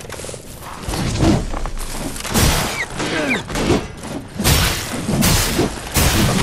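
Sword blows whoosh and strike hard in quick bursts.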